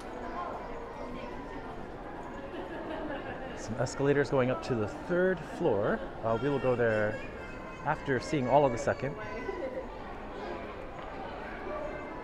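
A crowd murmurs and chatters in an echoing indoor space.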